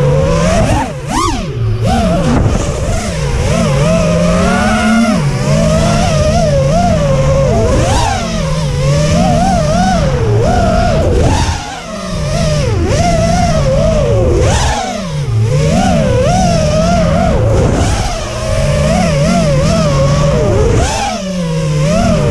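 Small drone motors whine loudly, rising and falling in pitch as the drone speeds up and turns.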